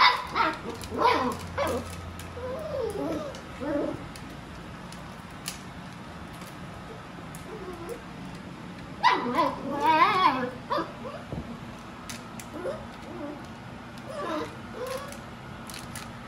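Puppies yip and whine excitedly close by.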